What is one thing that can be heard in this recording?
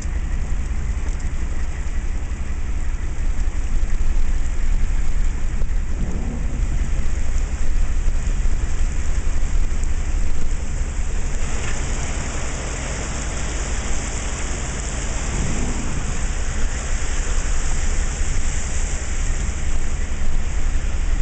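A vehicle engine hums steadily close by.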